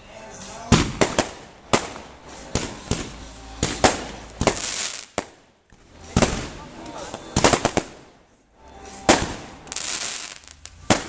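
Fireworks burst with sharp bangs and crackles, over and over.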